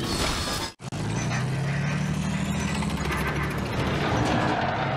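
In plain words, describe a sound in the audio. A tank engine rumbles low.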